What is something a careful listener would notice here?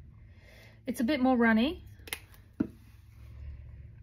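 A small bottle cap clicks.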